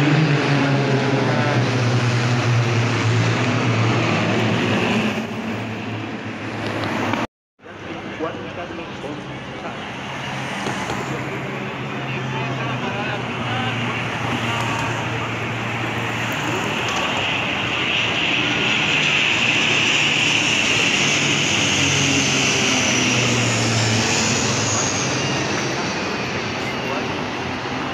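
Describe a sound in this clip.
Propeller planes drone loudly overhead.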